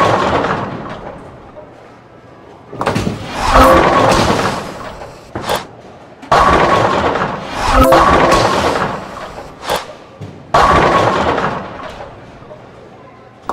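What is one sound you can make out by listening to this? A bowling ball rolls down a wooden lane with a low rumble.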